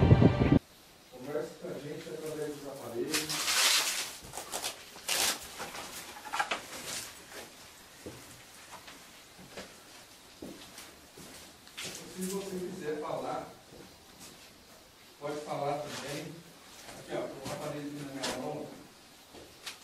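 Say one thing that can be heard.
A man speaks in a low voice nearby.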